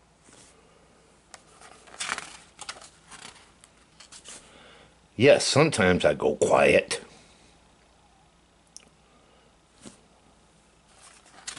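A book's paper page rustles as it is turned.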